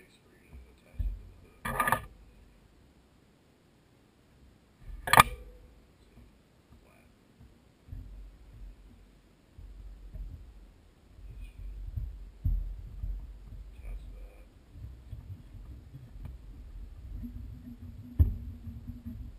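Small tools click and tap against a metal clamp close by.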